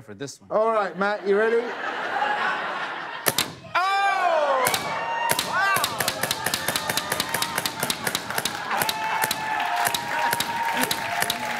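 A studio audience shouts and laughs loudly.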